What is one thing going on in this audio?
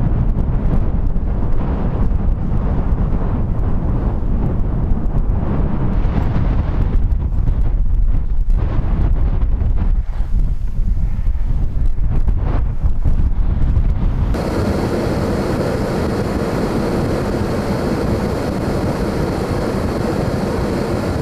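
Strong gusting wind roars across open country, buffeting the microphone.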